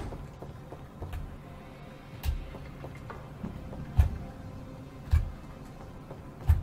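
Heavy footsteps thud at a slow pace.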